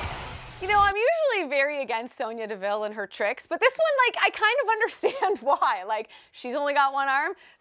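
A woman talks with animation into a microphone in a quiet studio.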